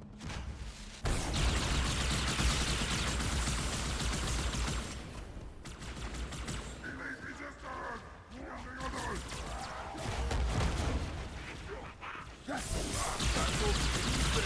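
Energy weapons fire in rapid, crackling bursts.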